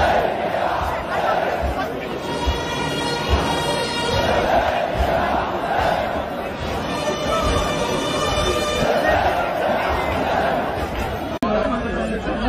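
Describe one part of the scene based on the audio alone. A large crowd murmurs and chants outdoors.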